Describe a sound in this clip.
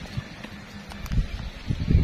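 Footsteps in sandals scuff on dry ground.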